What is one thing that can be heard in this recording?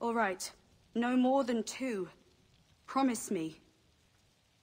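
A young woman speaks softly and pleadingly, close by.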